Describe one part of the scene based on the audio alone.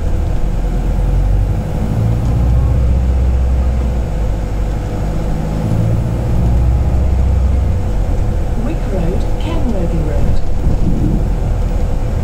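A bus engine rumbles and hums steadily from inside the bus.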